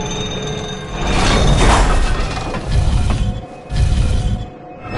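A metal cage door clanks shut.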